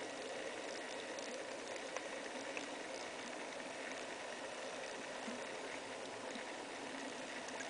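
Underwater, a steady hiss fills the water, with faint crackling and clicking throughout.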